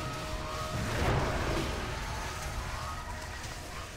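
Magic bolts whoosh and crash down.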